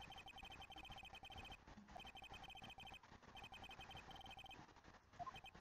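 Rapid high beeps tick from a video game.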